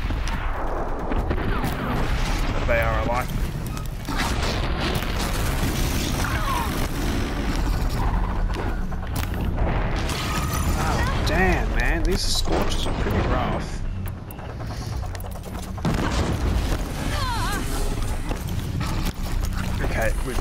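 A bowstring twangs as arrows fly.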